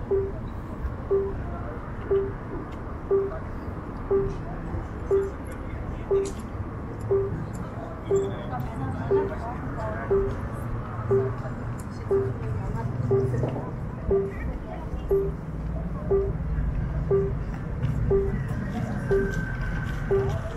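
A pedestrian crossing signal beeps once every second.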